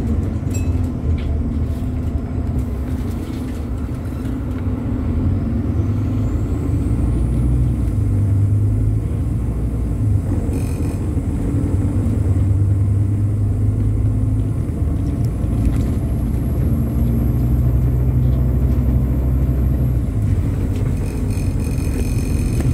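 A diesel double-decker bus engine rumbles from within as the bus drives along a road.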